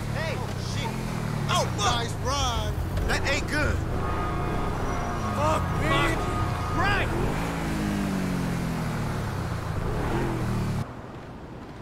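A sports car engine revs and hums as the car drives along.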